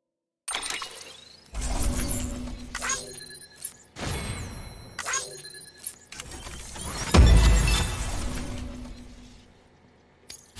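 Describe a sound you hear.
Electronic menu beeps and chimes sound in quick succession.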